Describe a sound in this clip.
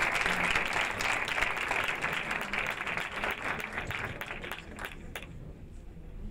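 An audience applauds loudly in a large room, then the clapping stops.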